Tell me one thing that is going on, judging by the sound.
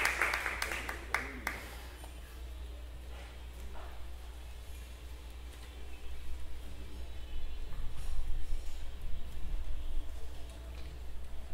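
A small band plays music quietly.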